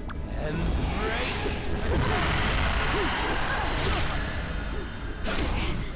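Game battle effects clash and whoosh with magical bursts.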